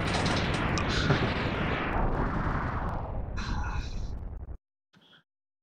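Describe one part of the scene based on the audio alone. A loud video game explosion roars and slowly fades away.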